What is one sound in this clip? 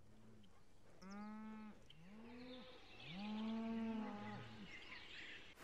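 Cows moo in low, drawn-out calls.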